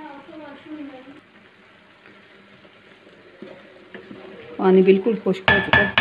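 A wooden spoon stirs and scrapes through cooked rice in a metal pot.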